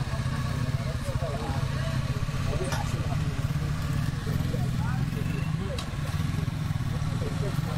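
Motorcycle engines rumble nearby.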